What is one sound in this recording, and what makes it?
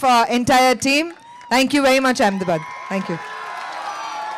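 A young woman speaks loudly and with animation through a microphone over loudspeakers.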